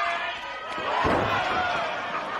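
A wrestler slams heavily onto the ring mat with a loud thud.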